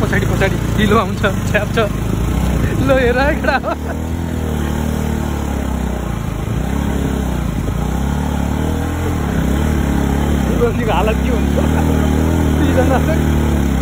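A motorcycle engine hums steadily while riding, its pitch rising and falling.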